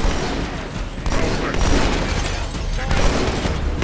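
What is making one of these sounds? Energy blasts crackle and hiss on impact.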